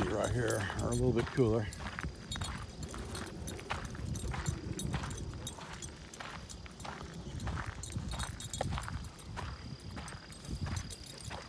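Footsteps scuff on a gravel path.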